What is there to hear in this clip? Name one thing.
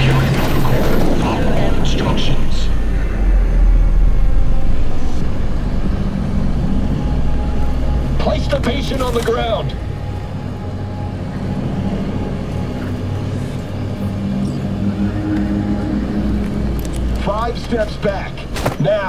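A hovering aircraft's engines hum and roar steadily close by.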